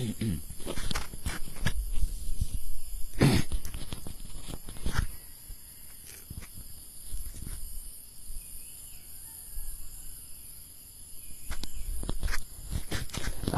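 Small objects click and rustle in a man's hands.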